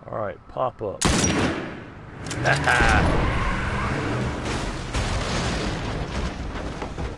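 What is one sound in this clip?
A loud explosion booms, followed by rumbling.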